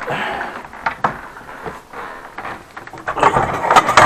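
A cabinet door swings open.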